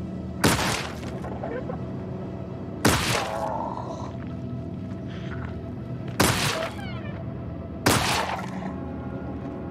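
A revolver fires loud shots that echo.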